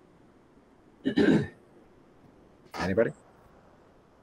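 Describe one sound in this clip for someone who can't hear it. A man chuckles briefly through an online call.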